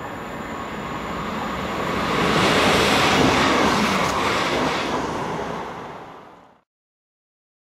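An electric multiple-unit train rushes through a station, its roar swelling and then fading.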